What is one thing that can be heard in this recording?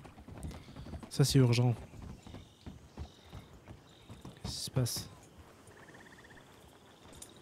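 Horse hooves clop on a wooden bridge and a dirt path.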